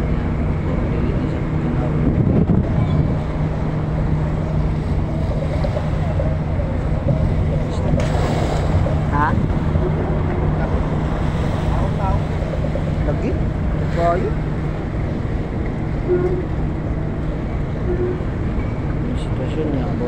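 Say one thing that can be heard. Waves splash against a ramp.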